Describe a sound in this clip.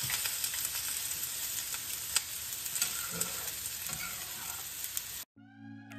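Liquid is poured into a simmering pan.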